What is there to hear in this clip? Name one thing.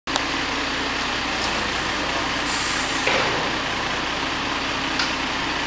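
A large truck engine rumbles nearby as the truck drives slowly past.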